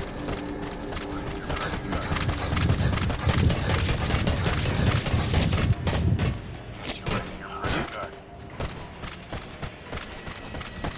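Footsteps thud quickly on metal walkways.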